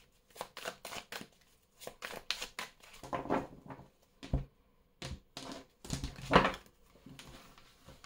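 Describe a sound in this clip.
Playing cards riffle and slap together as a deck is shuffled.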